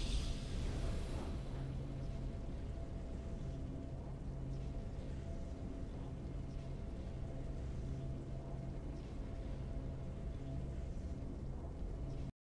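A soft, triumphant game melody plays steadily.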